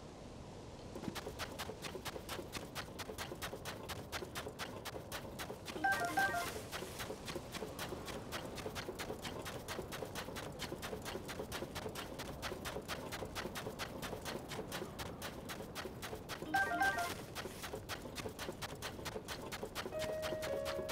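Quick footsteps run across soft sand.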